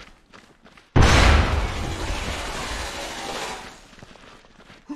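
A loud explosion booms close by and rumbles away.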